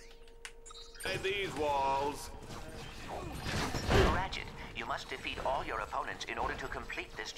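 Video game gunfire and explosions blast loudly.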